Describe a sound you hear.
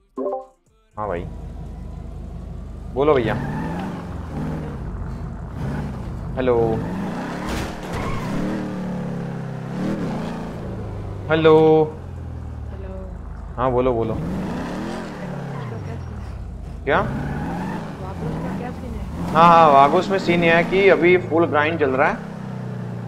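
A car engine revs and hums steadily in a game.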